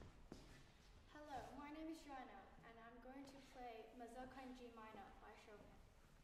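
A young girl speaks calmly in an echoing hall.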